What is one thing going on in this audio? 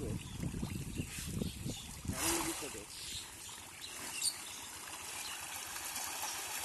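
Feeding fish splash and thrash at the surface of a pond.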